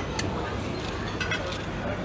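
Metal tongs clink against a serving dish.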